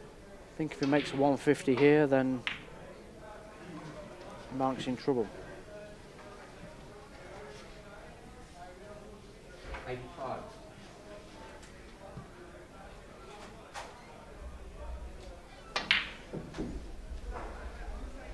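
Billiard balls knock together softly.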